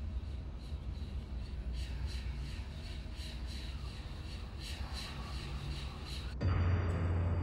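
Footsteps walk steadily across a stone floor.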